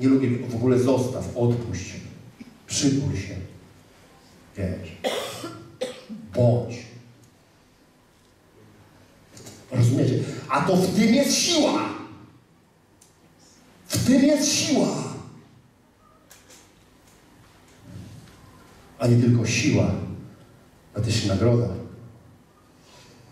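A man speaks with animation through a microphone in a large echoing hall, pausing often.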